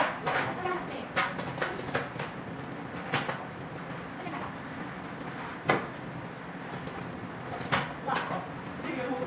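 Metal tent poles clank and knock in a large echoing hall.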